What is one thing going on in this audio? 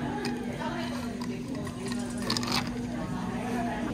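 Coffee pours over ice in a glass jar.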